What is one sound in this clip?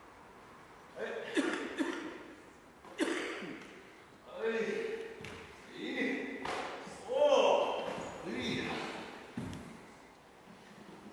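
A man talks calmly in an echoing hall.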